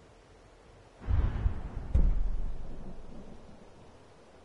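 A deep whoosh swells and fades as a game menu selection is made.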